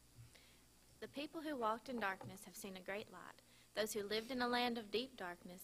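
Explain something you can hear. A woman speaks into a microphone over loudspeakers in a large echoing room.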